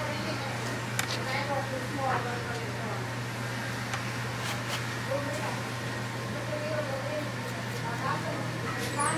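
A straight razor scrapes softly across stubble.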